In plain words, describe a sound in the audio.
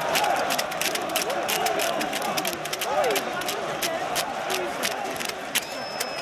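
A large stadium crowd chants and cheers outdoors.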